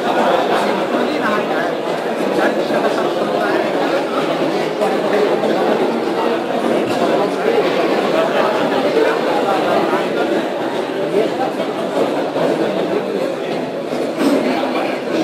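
A man speaks loudly, as if lecturing, in a room that echoes.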